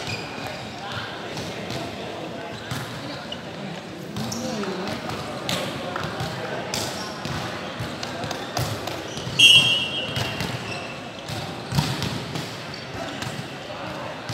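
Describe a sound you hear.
Young men call out to each other, with echoes from a large hall.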